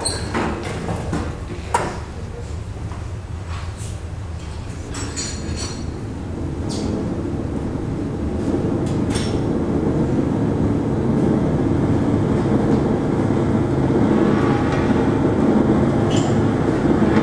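Scattered knocks and clicks sound from percussion being played.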